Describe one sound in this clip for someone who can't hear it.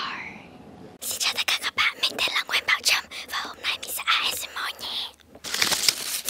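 A girl whispers softly, very close to a microphone.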